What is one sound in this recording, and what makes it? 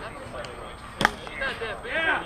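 A bat strikes a softball with a sharp crack.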